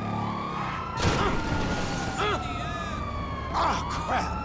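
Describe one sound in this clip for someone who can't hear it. A motorcycle crashes and scrapes across the road.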